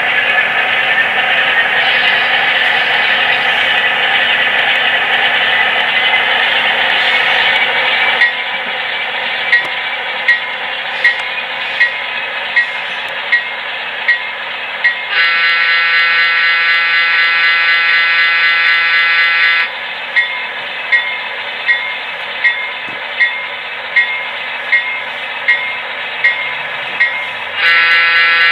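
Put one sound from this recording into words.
A model train engine hums and rumbles steadily.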